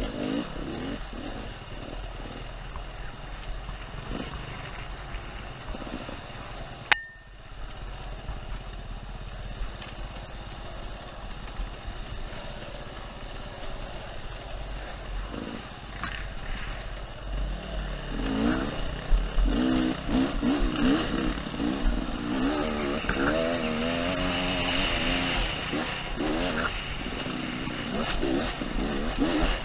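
A dirt bike engine revs and roars close by.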